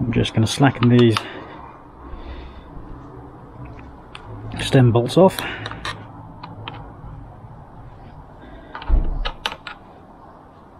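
A small metal tool clicks and taps against a bicycle's brake lever.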